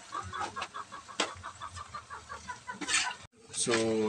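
A metal spoon scrapes and stirs food in a metal pan.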